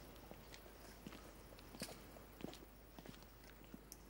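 Footsteps walk away on paving.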